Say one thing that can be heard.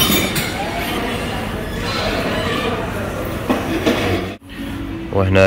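Food sizzles and hisses in a hot pan.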